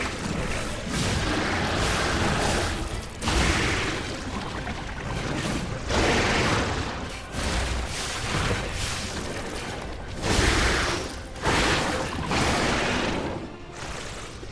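Heavy blows crash in loud bursts.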